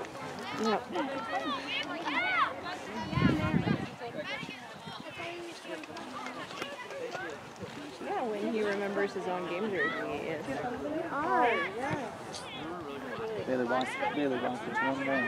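Children shout and call out to each other outdoors in the open air.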